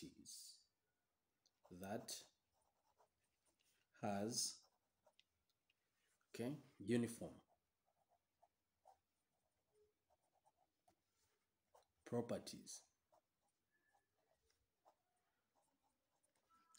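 A ballpoint pen writes on paper.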